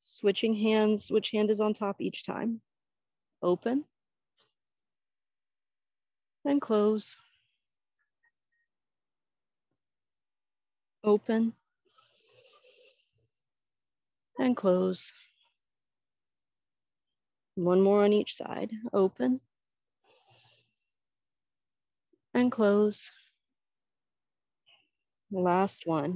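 A woman speaks calmly in short phrases, close to a microphone.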